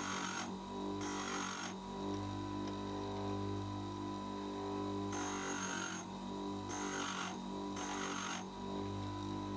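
A metal tool rasps against a spinning grinding wheel in short bursts.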